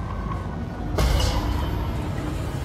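An explosion booms with a sudden blast.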